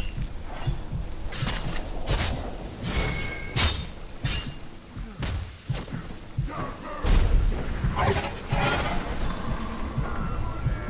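Swords clash and strike in quick, sharp blows.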